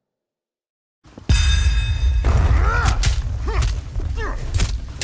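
Magic spell effects whoosh and crackle loudly.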